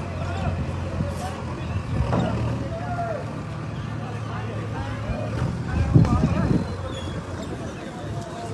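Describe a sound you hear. A digger's engine rumbles steadily nearby.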